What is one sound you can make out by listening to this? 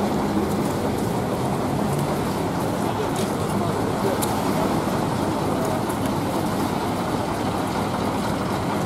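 A crowd murmurs outdoors in the open.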